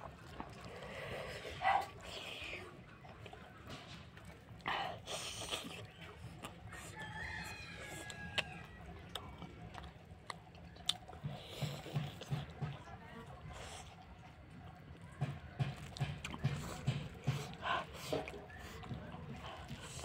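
A woman chews and smacks her lips close up.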